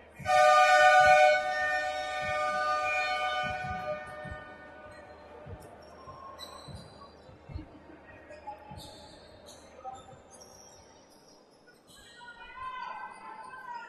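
Sneakers squeak on a hard court in an echoing hall.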